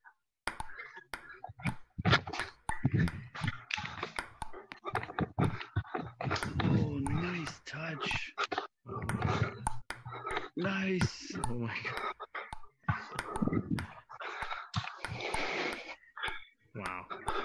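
A ping-pong ball clicks sharply against paddles and a table in quick rallies.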